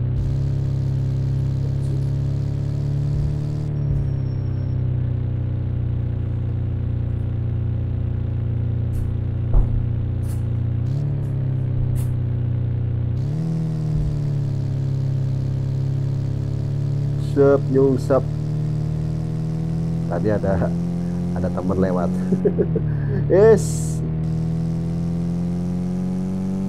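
A van engine drones steadily, its pitch shifting up and down as the van accelerates and changes gear.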